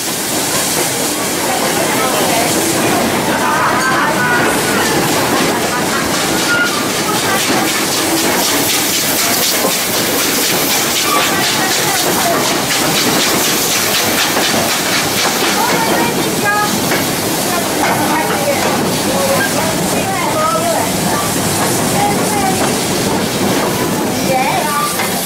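A train rolls steadily along the rails with a clattering rumble.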